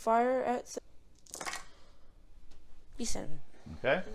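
Dice clatter as they tumble onto a soft mat.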